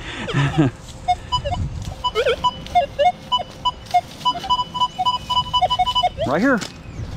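A metal detector beeps in quick repeated tones.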